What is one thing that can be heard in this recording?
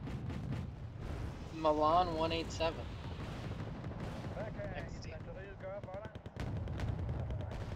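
Shells explode with dull booms.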